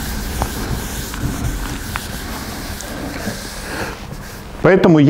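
A rag rubs across a board.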